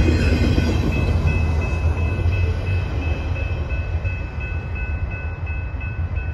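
A long freight train rumbles past close by.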